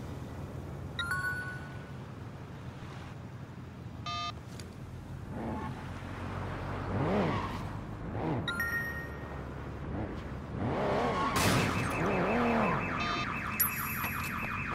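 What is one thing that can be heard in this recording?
A phone chimes with a message alert.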